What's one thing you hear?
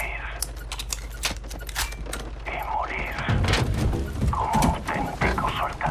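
A pistol clicks as it is handled.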